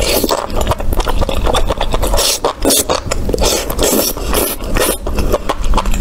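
A person slurps noodles loudly close to a microphone.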